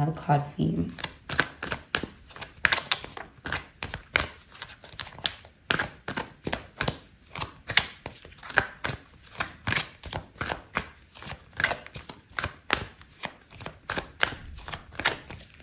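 Cards are shuffled by hand with quick, soft flicking taps.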